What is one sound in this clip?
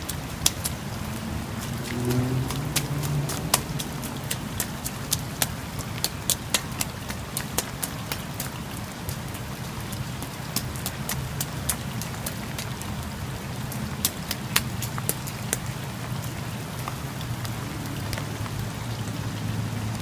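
Rain patters steadily outdoors.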